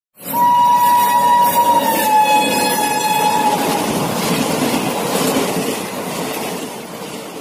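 A passenger train rushes past with a loud roaring clatter.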